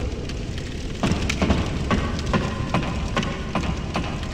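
Footsteps knock on the rungs of a wooden ladder.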